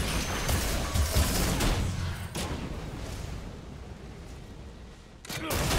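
Fiery spell blasts whoosh and crackle.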